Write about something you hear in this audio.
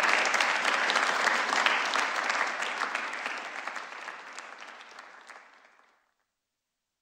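An audience claps loudly in a large hall, the applause fading away.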